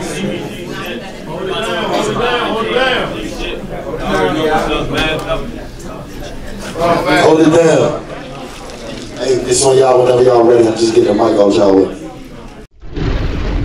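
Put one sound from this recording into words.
A man raps loudly into a microphone.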